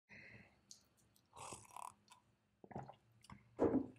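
A glass is set down on a table with a light knock.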